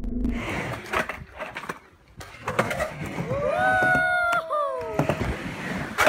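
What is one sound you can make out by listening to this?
Skateboard wheels roll and scrape on concrete.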